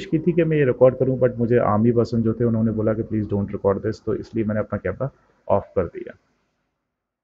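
A man speaks close up, with animation.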